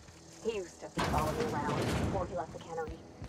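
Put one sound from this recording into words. A heavy metal door slides open with a loud whoosh.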